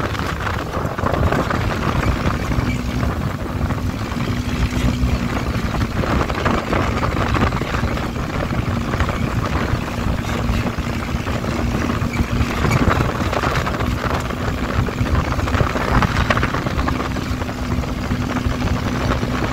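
A buggy engine drones steadily.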